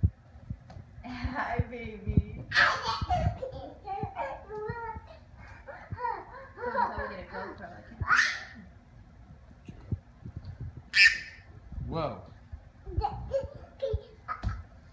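A toddler babbles and laughs excitedly close by.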